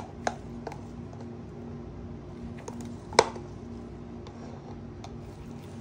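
Thick paint drips and splashes softly onto a surface.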